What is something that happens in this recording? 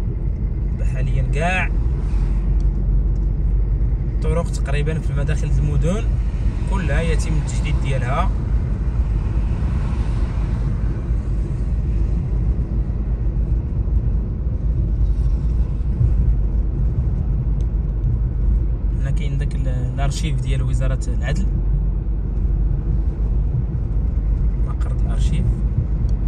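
Tyres roll with a low, steady rumble on smooth road.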